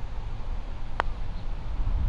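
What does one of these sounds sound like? A putter taps a golf ball with a sharp click.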